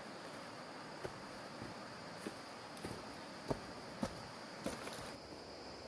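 Footsteps crunch on dry leaves close by.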